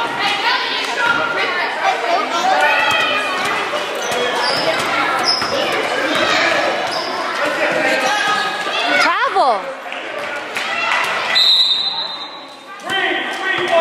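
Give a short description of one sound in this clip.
A crowd of children and adults shouts and cheers in a large echoing gym.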